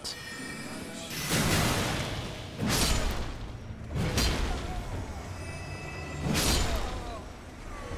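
A heavy sword swings and strikes with sharp, ringing hits.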